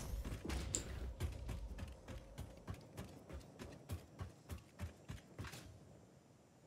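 Footsteps clang steadily on metal stairs.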